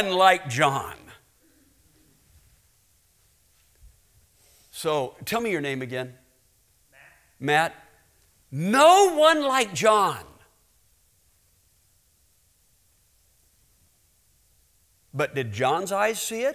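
A middle-aged man speaks with animation through a microphone in a large hall, pausing now and then.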